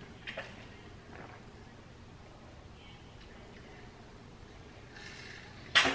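A young woman drinks water in gulps.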